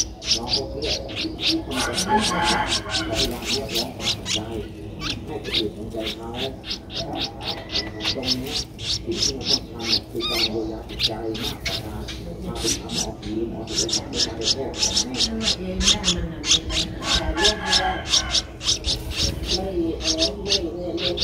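A baby bird chirps rapidly and shrilly, close by.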